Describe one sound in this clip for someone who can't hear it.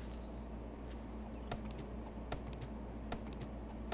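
An axe chops into a tree trunk with sharp thuds.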